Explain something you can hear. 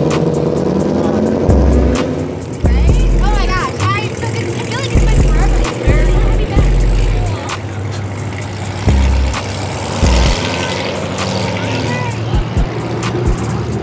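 A sports car engine idles with a deep, uneven rumble.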